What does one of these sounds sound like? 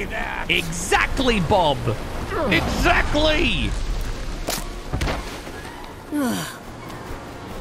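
A man speaks animatedly and close into a microphone, his voice rising and falling.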